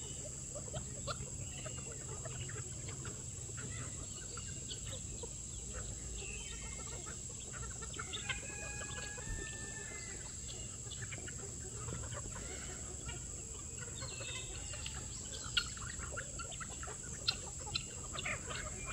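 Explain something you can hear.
A flock of chickens clucks and pecks nearby.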